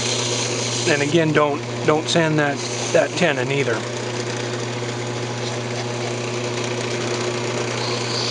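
A motor hums steadily.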